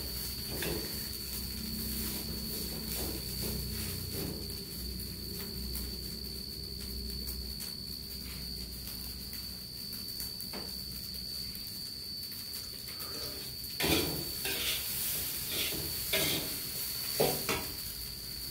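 A spatula scrapes and stirs food in a wok.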